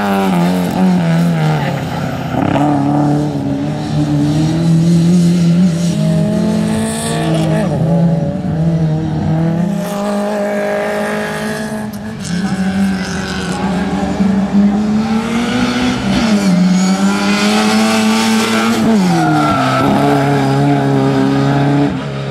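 A classic Mini's small four-cylinder engine revs hard, rising and falling through the corners.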